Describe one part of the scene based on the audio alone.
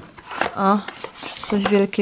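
Chalk scrapes across cloth.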